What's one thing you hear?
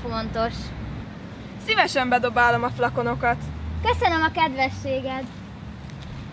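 A young woman speaks calmly and closely.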